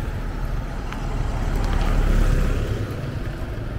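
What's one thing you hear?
A small pickup truck drives past close by.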